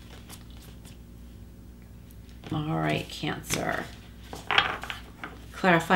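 Cards rustle softly as they are shuffled by hand.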